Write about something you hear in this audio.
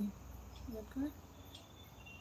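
A woman speaks briefly and softly, close by.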